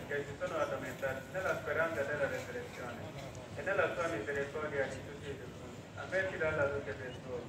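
A man speaks steadily over a loudspeaker.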